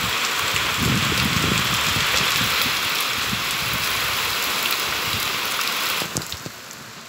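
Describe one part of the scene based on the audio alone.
Heavy rain pours down outside and drums against a window.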